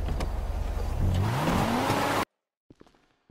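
A car engine revs with a loud backfire.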